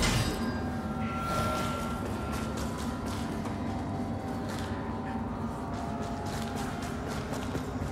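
Footsteps crunch over rubble.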